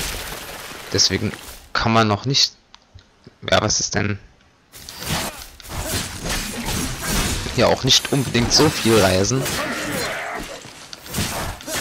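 Swords slash and strike in a fast fight.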